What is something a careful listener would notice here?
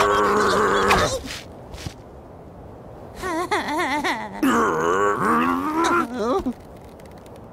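A young man speaks in a high, shaky, nervous voice.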